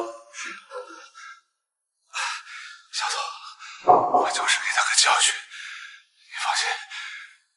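A middle-aged man speaks angrily and close by.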